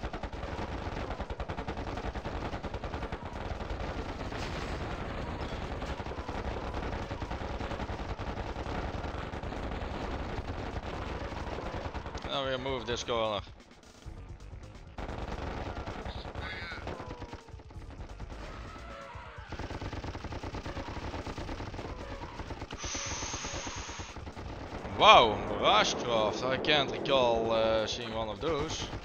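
Game gunfire rattles in bursts.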